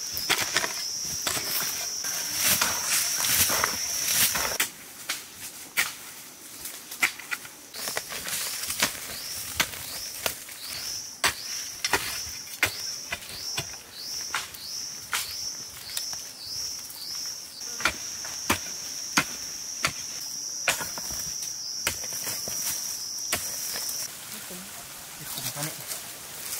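A hoe chops repeatedly into loose dirt.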